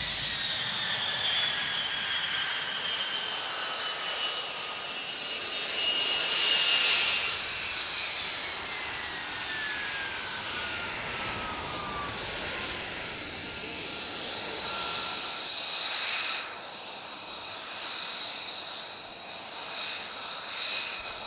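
A jet engine whines loudly as a fighter plane taxis slowly.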